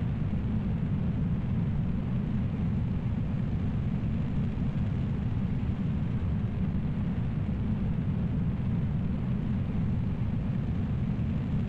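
A rocket engine roars steadily with a deep rumble.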